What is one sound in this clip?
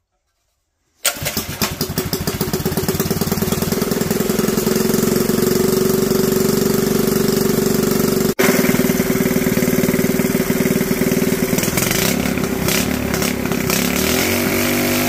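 A small petrol engine starts up and runs loudly at a steady idle.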